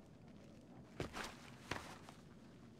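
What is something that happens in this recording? Hands grab onto a metal pipe with a dull thud.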